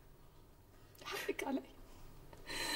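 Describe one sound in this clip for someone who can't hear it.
A young woman sobs and cries.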